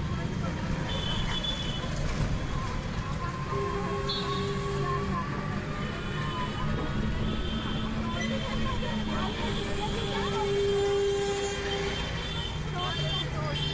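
A motor rickshaw's engine hums close by.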